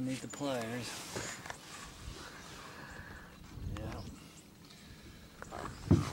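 An elderly man speaks calmly close by, outdoors.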